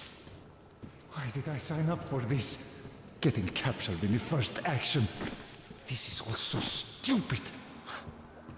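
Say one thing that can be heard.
A man speaks in a low, gruff voice nearby.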